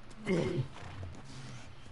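A man grunts in pain close by.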